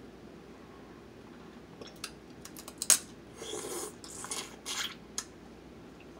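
A woman chews and slurps wetly close to a microphone.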